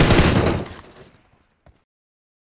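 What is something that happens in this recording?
A rifle fires a loud burst of shots that echoes away.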